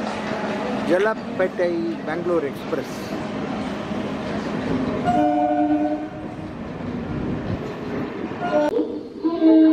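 A train rumbles past on the tracks.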